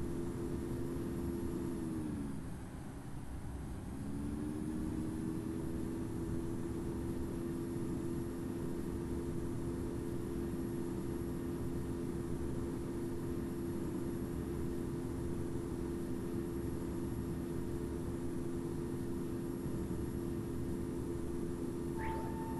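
A jet engine drones steadily, dipping briefly before rising again.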